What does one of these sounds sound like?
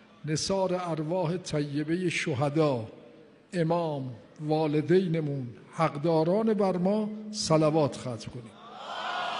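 An elderly man speaks with feeling through a microphone in an echoing hall.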